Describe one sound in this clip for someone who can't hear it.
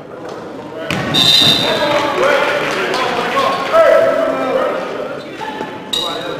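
A crowd cheers and claps in an echoing gym.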